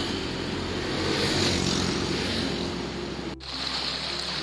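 Motorbike engines hum as motorbikes pass close by.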